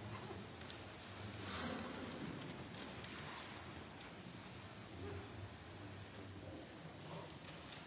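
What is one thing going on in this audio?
A choir of elderly men sings together in a large echoing hall.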